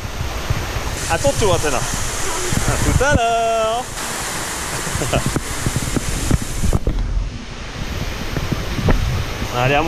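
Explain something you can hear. Water rushes and splashes down a slide.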